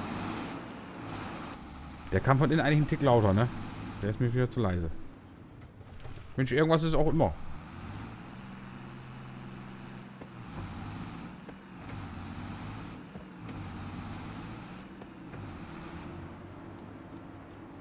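A tractor engine hums steadily as it drives.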